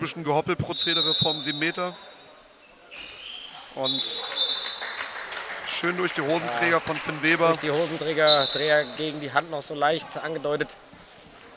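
A man talks loudly close by in an echoing hall.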